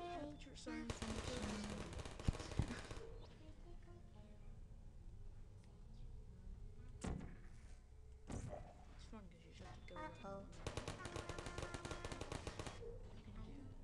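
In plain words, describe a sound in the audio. A turret fires rapid bursts of gunfire.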